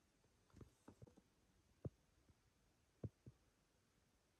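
A lip gloss applicator clicks and smacks faintly against lips.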